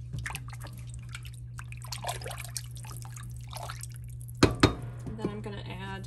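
A wooden spoon stirs and scrapes through thick soup in a metal pot.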